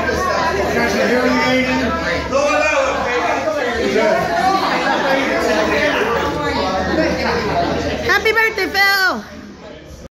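An elderly man speaks loudly to a room, close by.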